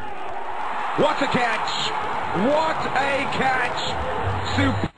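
A young man shouts in celebration.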